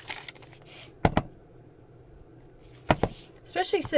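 A stamp taps against an ink pad.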